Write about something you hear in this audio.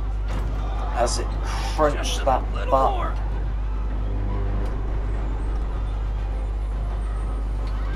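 A car's metal body groans and creaks as it is heaved up.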